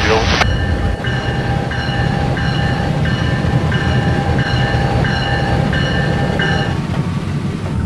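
A railway crossing bell rings in a steady repeating pattern.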